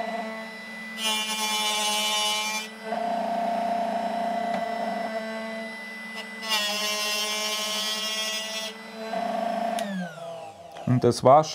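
A small grinding machine hums and whines steadily, then winds down.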